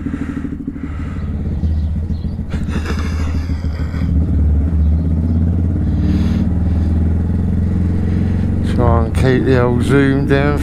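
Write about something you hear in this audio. A motorcycle engine revs and pulls away, growing louder.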